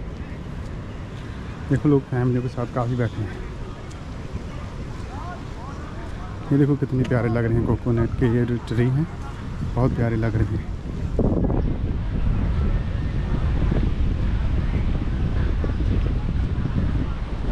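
Wind blows outdoors with a low rumble.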